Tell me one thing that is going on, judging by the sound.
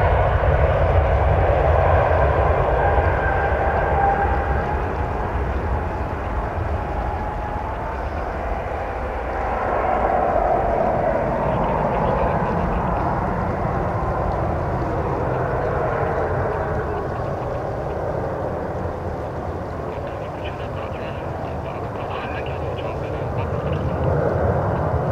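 A jet engine roars loudly as a plane takes off and climbs away.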